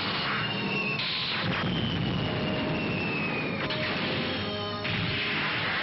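Laser blasts zap and whine.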